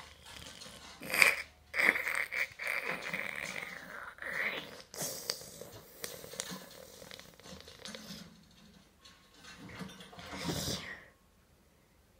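Bristles of a mop scrape and thump against a wooden door, heard through a television speaker.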